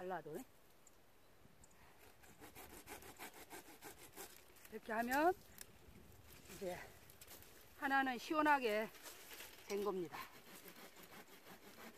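Pruning shears snip through tree branches.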